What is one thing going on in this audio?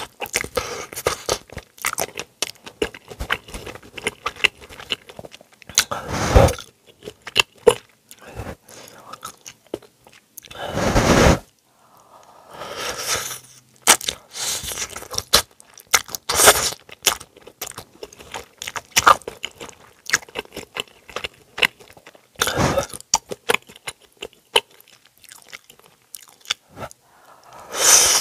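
Chopsticks clink against a metal pan.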